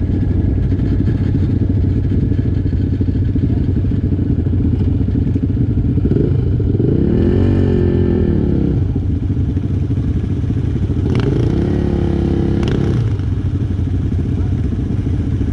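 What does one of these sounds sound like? Quad bike engines idle with a low, steady rumble close by.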